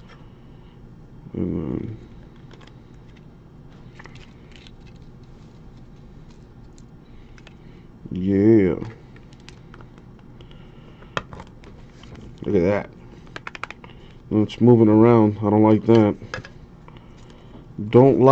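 Hard plastic card cases click and tap as they are handled.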